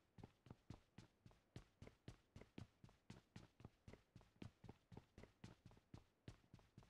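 Quick running footsteps thud steadily on a hard floor.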